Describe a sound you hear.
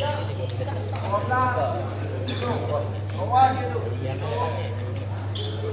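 Men talk casually at a distance in a large hall.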